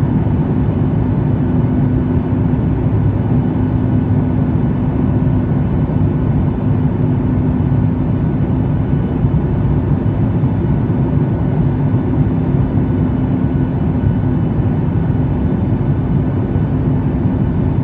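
Jet engines roar steadily inside an airplane cabin in flight.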